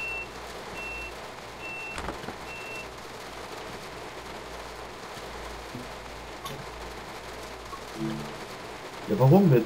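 Rain patters steadily on a train's windscreen.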